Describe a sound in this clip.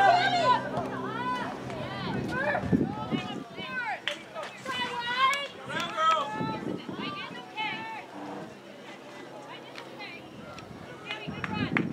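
Young women shout to each other across an open field outdoors.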